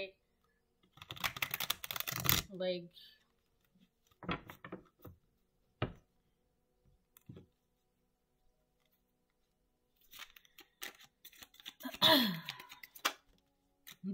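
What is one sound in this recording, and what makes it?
Playing cards are shuffled and riffled.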